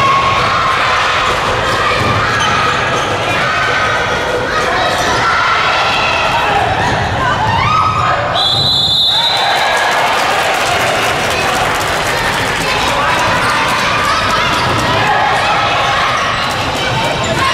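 A crowd of young spectators cheers and shouts in a large echoing hall.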